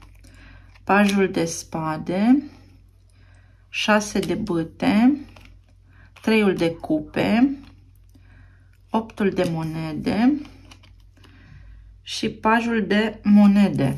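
Playing cards rustle softly as they are shuffled by hand.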